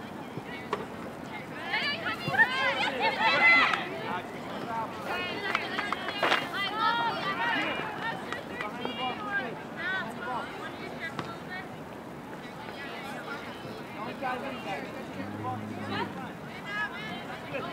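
Spectators on the sideline cheer and shout.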